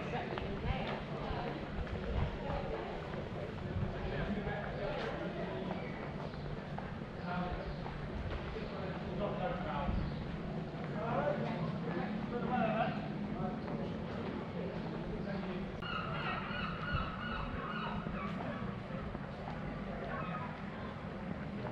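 Footsteps fall on brick paving outdoors.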